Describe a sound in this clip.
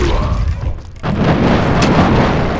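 A burst of fire whooshes and crackles.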